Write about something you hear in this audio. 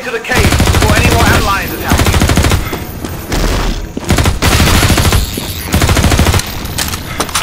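An automatic gun fires loud rapid bursts.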